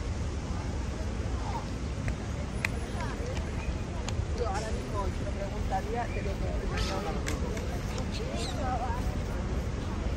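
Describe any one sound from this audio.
Distant voices of passers-by chatter faintly.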